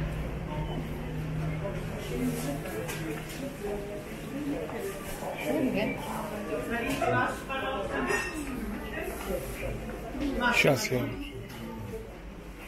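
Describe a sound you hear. Men and women chat and murmur nearby in a busy room.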